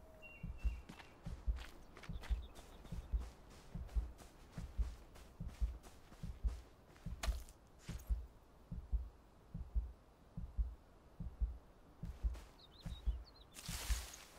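Footsteps thud steadily across grass at a running pace.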